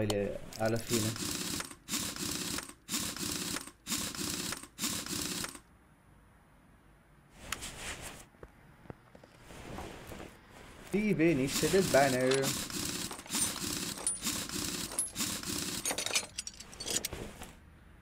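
Metallic ratcheting clicks sound as wheel bolts are worked.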